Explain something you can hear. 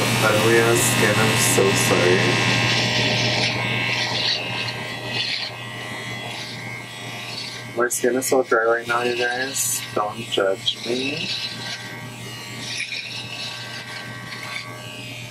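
An electric trimmer buzzes steadily.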